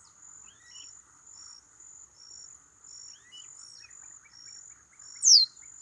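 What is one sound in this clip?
A small bird chirps in high, quick, repeated notes.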